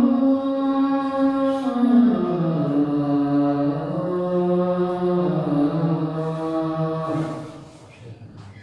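A man chants a long, drawn-out melodic call in a loud, echoing room.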